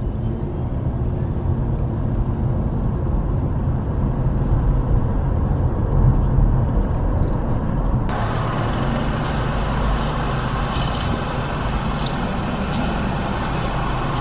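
A car engine hums low and steady from inside the car as it drives.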